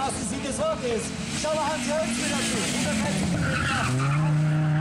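A turbocharged five-cylinder Audi Quattro rally car approaches and brakes with its engine popping.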